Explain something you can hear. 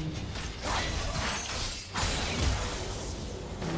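Game spell effects crackle and burst during a fight.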